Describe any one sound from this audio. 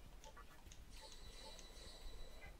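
A soft chime plays as a party member is healed.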